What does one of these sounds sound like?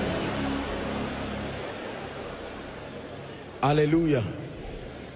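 A man speaks with animation into a microphone, heard through loudspeakers in a large echoing hall.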